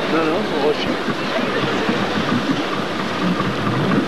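Sea waves wash and splash against rocks.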